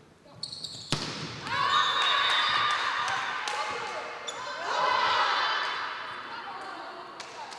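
Spectators cheer and clap loudly after a point.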